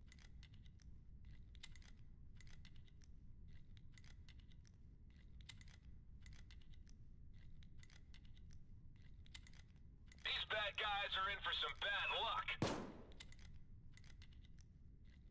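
Soft metallic clicks come from a lock being picked.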